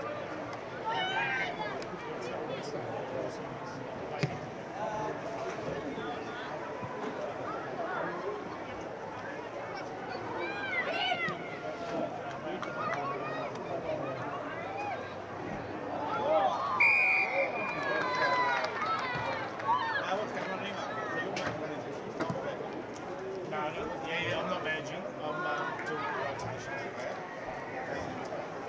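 Young players and spectators shout across an open field.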